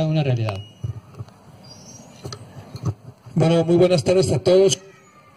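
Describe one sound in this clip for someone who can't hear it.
A man speaks with animation into a microphone over a loudspeaker.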